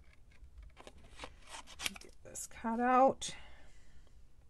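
Scissors snip through paper card.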